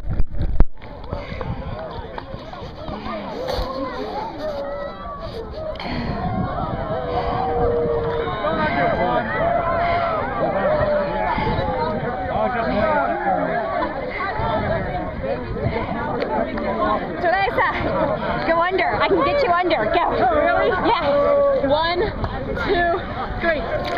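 Sea water laps and splashes around people wading.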